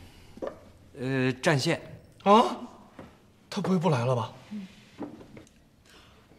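A woman speaks with surprise close by.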